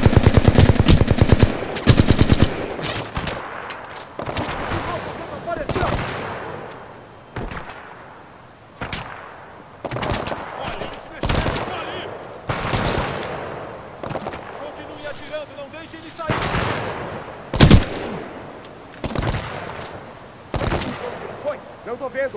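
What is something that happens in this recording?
A rifle fires rapid bursts of shots that echo away.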